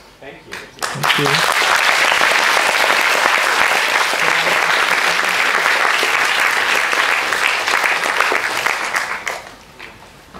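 An audience claps and cheers loudly.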